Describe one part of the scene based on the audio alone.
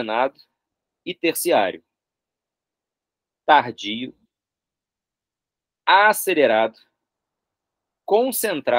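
A young man speaks calmly and clearly into a close microphone, in short phrases with pauses, as if over an online call.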